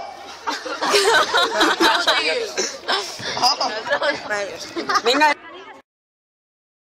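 Teenage boys laugh and chatter loudly nearby.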